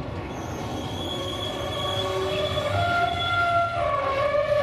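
Train wheels squeal against the rails.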